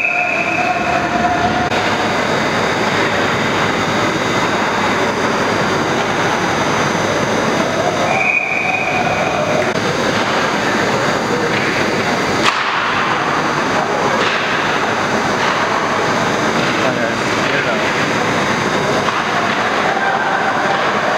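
Ice hockey skates scrape on ice in a large echoing rink.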